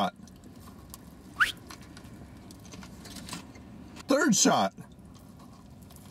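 A man chews food close by.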